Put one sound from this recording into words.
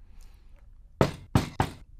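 A young woman knocks on a glass door.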